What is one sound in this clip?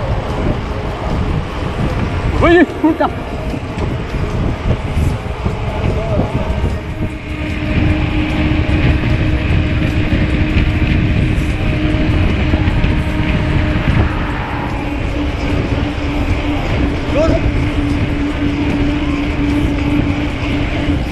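Wind roars loudly across the microphone.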